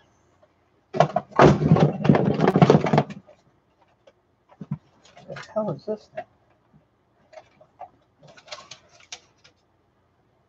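A plastic bin rattles and scrapes as hands move it.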